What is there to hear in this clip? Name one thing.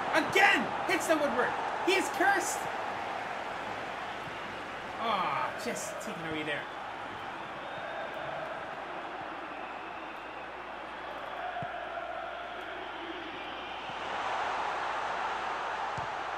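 A stadium crowd murmurs and cheers steadily, swelling near the end.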